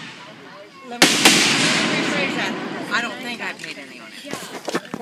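Fireworks crackle and sizzle after a burst.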